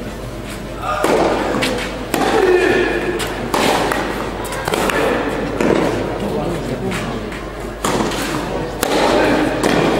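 A tennis ball is struck with a racket, back and forth.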